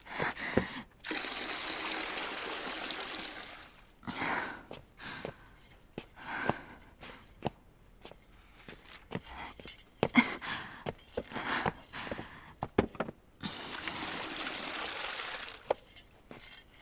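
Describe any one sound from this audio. Water pours heavily from a wooden bucket into a tub.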